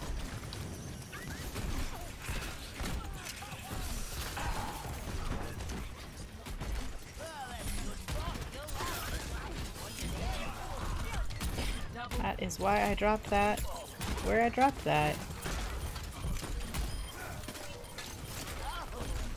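A woman talks into a close microphone with animation.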